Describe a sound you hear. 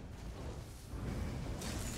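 A fiery weapon whooshes through the air.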